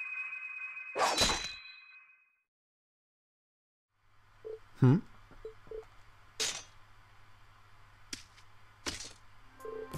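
A sword swishes sharply through the air.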